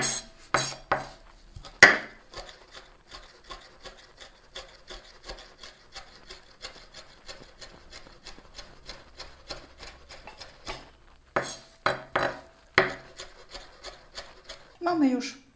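A knife chops rapidly on a wooden board.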